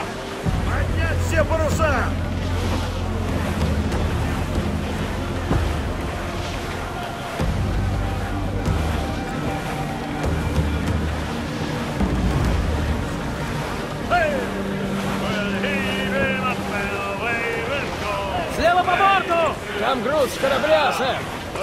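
Waves rush and splash against a wooden ship's hull.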